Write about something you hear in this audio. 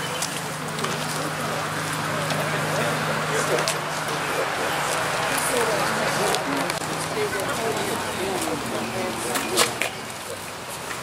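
A man speaks to a crowd outdoors, heard from a short distance.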